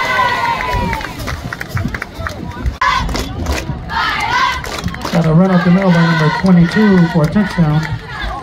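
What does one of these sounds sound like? Girls clap their hands in rhythm.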